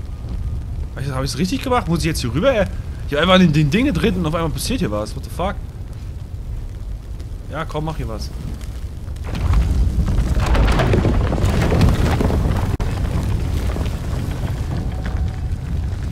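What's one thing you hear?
A fire roars steadily.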